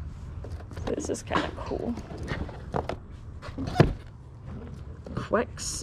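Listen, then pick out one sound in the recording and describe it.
A cardboard box is handled and rustles close by.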